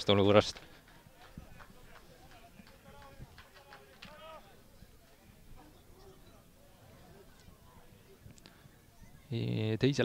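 Young men shout faintly to each other across an open sports field.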